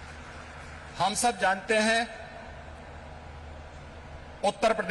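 A middle-aged man speaks forcefully into a microphone over loudspeakers in a large hall.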